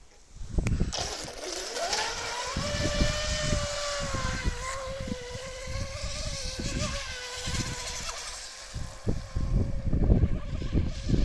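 A small electric motor whines, rising in pitch as a toy boat speeds away.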